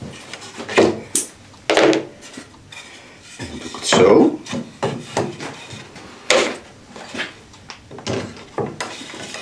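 A bar clamp clicks as it is tightened.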